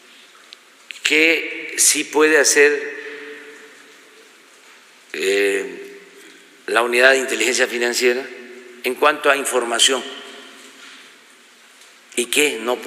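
An elderly man speaks calmly and slowly into a microphone, with pauses, in a room with some echo.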